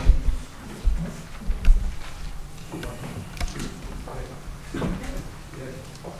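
Knocks and bumps come from a microphone being handled.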